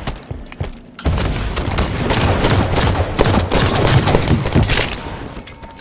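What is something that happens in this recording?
A rifle fires rapid shots.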